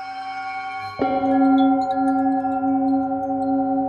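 A singing bowl is struck and rings out loudly.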